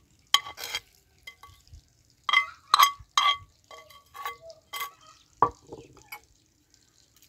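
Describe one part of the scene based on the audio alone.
A metal spoon scrapes food from a pan into a bowl.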